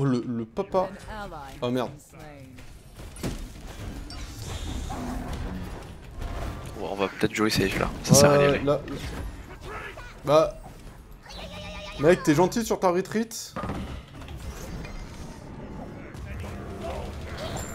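Game sound effects whoosh and clash.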